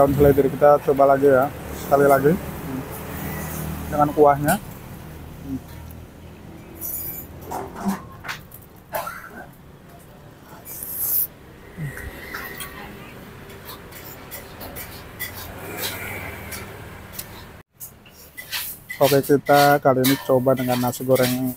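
A metal fork and spoon clink and scrape against a plate.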